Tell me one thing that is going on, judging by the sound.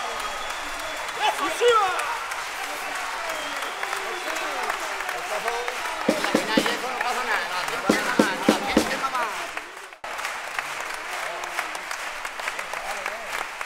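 Guitars strum.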